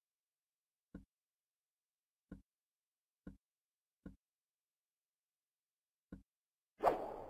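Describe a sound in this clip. Soft clicks sound as menu buttons are pressed.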